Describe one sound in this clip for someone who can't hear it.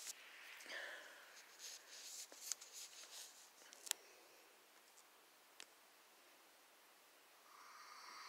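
A small dog breathes softly in its sleep.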